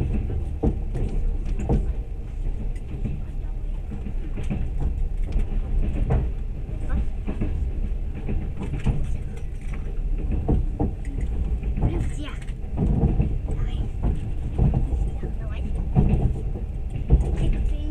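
Train wheels clack and knock over rail joints.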